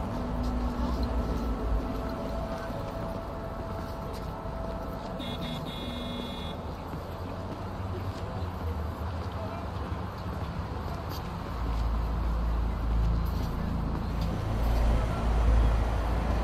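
A low city hum rumbles throughout.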